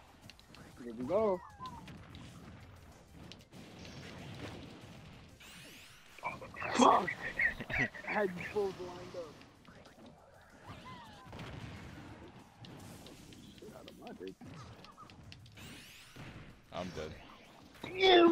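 Punches and blasts crack and thud in a fight.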